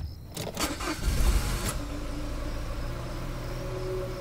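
A car engine starts and settles into a low, steady idle.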